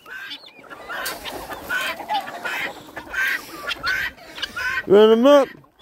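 Chickens cluck and chirp up close.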